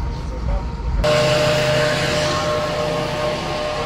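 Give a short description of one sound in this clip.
A small loader's engine rumbles and whines close by.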